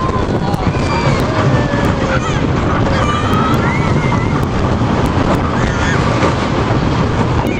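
Riders scream and shriek nearby.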